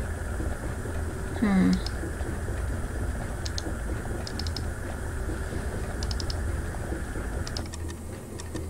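Liquid bubbles softly in glass flasks.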